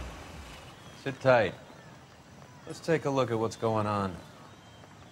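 A man speaks calmly inside a car.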